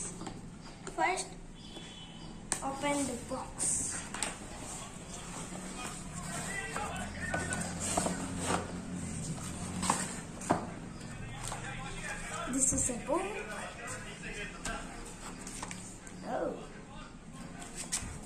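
Cardboard and paper rustle and scrape as a box is opened and handled.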